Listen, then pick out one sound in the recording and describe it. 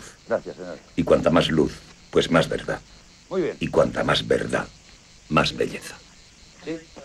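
A man talks with animation at a distance.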